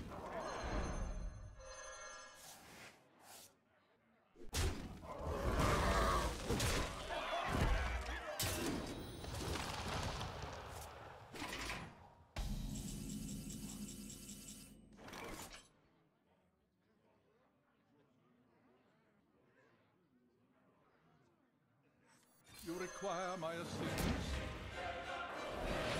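Fantasy game sound effects whoosh and crash as magic spells and attacks land.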